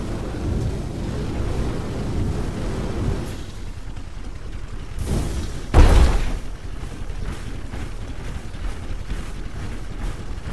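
A large robot walks with heavy, thudding footsteps.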